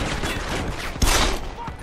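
A pistol fires a loud shot close by.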